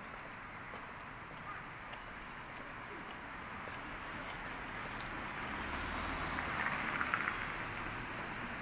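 A quiet town street hums softly outdoors.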